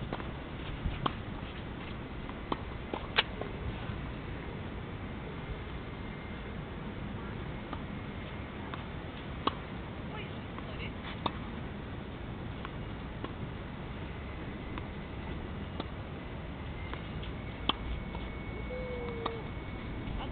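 Tennis rackets strike a ball back and forth on a clay court.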